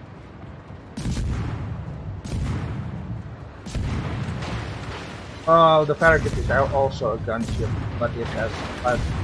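Naval guns fire with loud booming blasts.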